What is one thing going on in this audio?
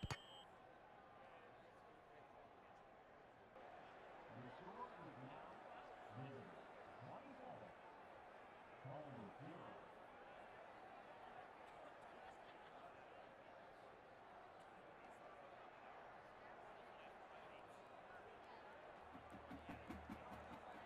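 A stadium crowd cheers and roars steadily.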